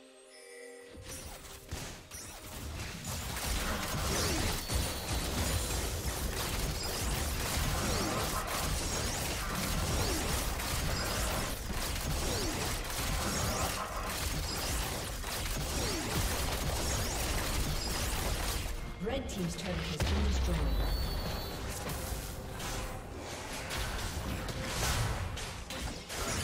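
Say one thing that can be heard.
Game spell effects and attacks crackle and clash in a fast battle.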